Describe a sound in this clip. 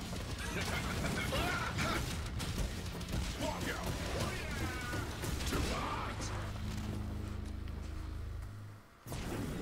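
Punches and kicks thud and crack in a fast fight.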